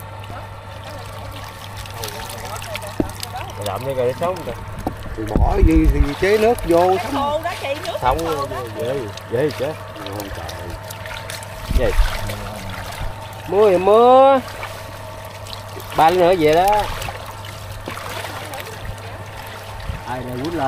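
Water splashes as hands grope through a shallow pool.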